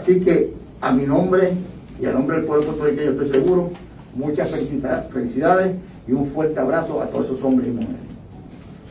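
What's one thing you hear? A man speaks calmly into a microphone, heard through a loudspeaker.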